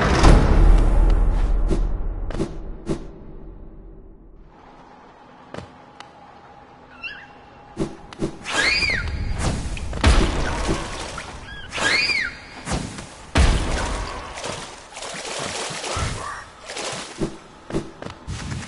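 A small game character's footsteps tap quickly.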